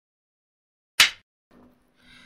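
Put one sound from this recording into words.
A clapperboard snaps shut once.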